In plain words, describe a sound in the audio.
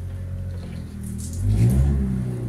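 A spray bottle spritzes water onto glass.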